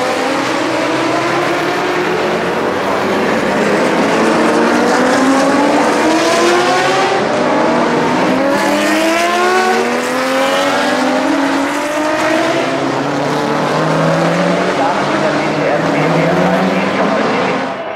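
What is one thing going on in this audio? Racing car engines roar loudly as the cars speed past.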